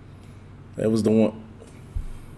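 A man speaks briefly and casually close by.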